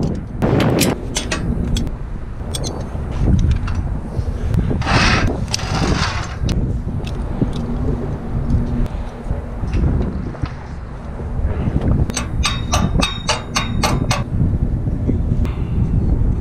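Wind rumbles across the microphone high outdoors.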